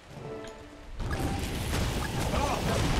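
Weapons and spells clash in a noisy fight.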